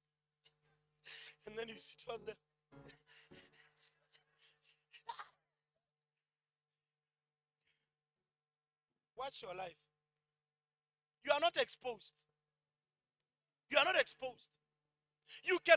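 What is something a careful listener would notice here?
A man speaks with animation into a microphone, heard through loudspeakers in bursts with pauses.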